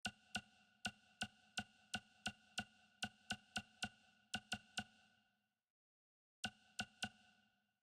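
Short chiming menu clicks sound in quick succession, pausing briefly before a final few.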